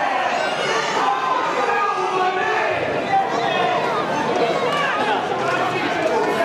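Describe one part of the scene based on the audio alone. Many men shout and call out to each other outdoors.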